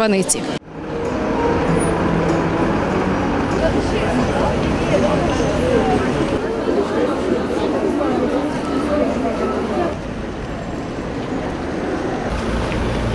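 A crowd of men and women chatter as they walk along outdoors.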